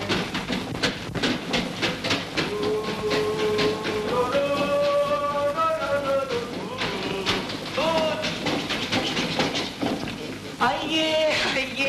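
A toy pedal car rattles as it rolls across a hard floor.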